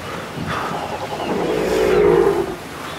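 A large creature growls up close.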